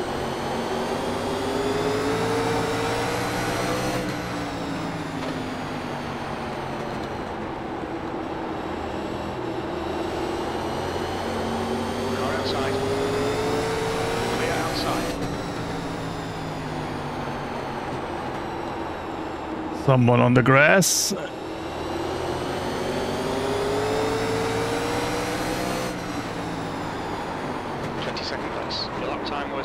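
A race car engine roars steadily, its pitch rising and dropping as the gears shift.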